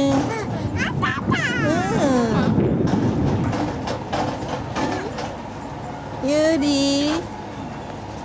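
A toddler squeals and chatters close by.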